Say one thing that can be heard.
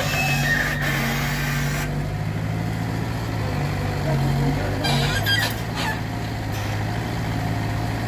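Logs knock and thud as they drop into a truck bed.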